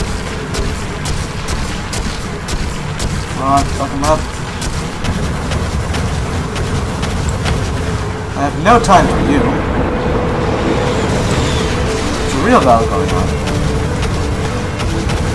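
Fireballs whoosh and burst with loud blasts.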